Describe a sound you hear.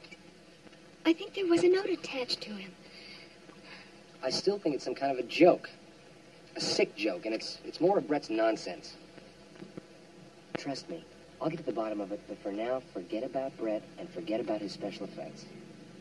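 A woman speaks tensely.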